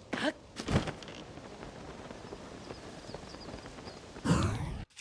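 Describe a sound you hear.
Wind rushes softly during a glide.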